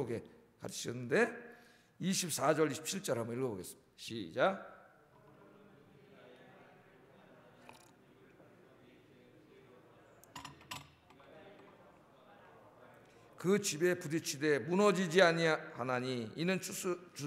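A middle-aged man speaks slowly and earnestly into a microphone, with long pauses.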